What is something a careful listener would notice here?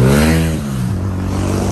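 A car passes very close and its engine sound drops in pitch as it goes by.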